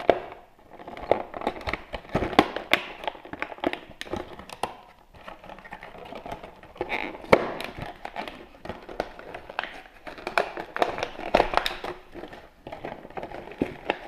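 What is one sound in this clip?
Plastic packaging crinkles and crackles under fingers.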